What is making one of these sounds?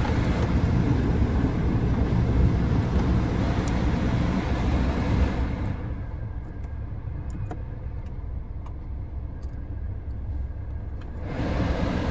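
A control knob clicks as it turns.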